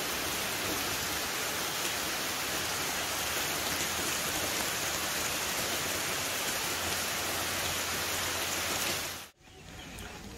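Rain falls steadily over a forest.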